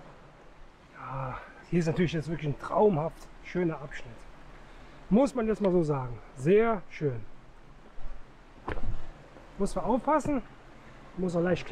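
A man talks breathlessly close by.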